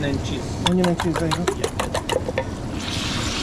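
A fork clinks rapidly against a metal bowl.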